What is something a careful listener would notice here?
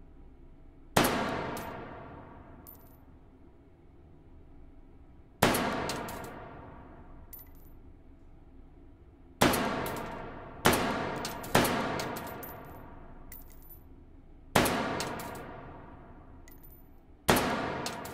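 Pistol shots ring out one at a time, each echoing loudly down a long hall.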